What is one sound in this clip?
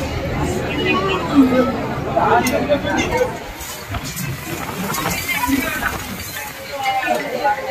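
A plastic sheet rustles as men pull it.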